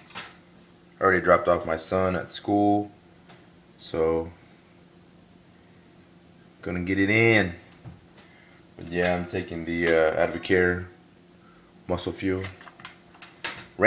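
A man talks casually and close up, in short bursts.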